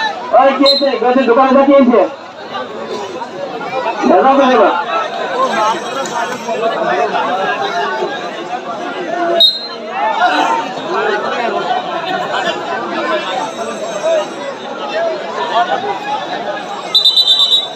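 A large outdoor crowd chatters and shouts.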